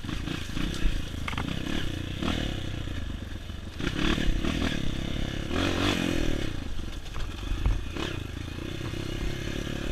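A dirt bike engine revs and putters close by.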